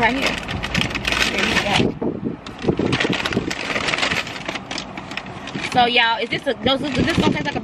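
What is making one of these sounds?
Paper bags rustle and crinkle.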